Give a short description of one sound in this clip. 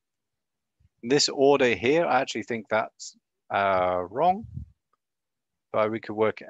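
A man talks calmly into a microphone, in short bursts with pauses.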